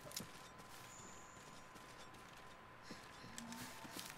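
Footsteps pad softly through grass.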